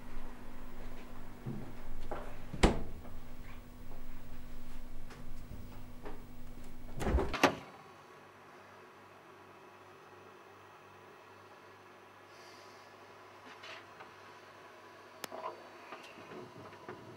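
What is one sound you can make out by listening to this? A refrigerator door thuds shut.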